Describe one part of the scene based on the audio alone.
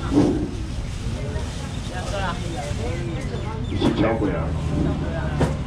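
Men and women chatter nearby in a busy crowd.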